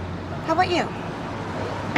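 A woman speaks earnestly up close.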